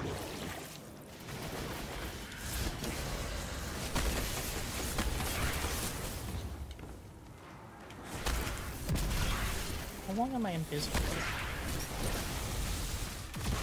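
Gunfire and blasts go off in a video game.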